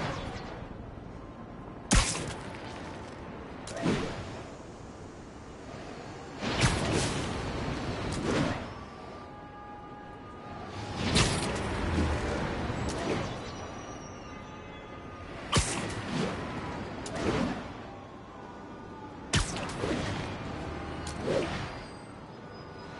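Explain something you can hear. Wind rushes past during fast swinging through the air.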